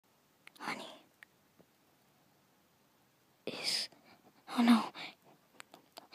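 A young woman whispers softly, very close to the microphone.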